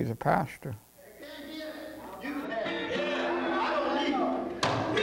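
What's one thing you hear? A man preaches loudly through a microphone in an echoing hall.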